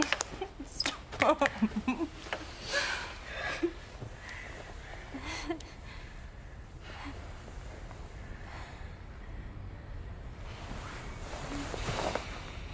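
A young man breathes heavily and moans close by.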